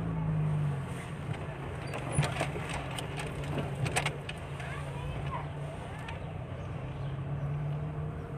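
A car engine hums steadily from inside the car while it drives.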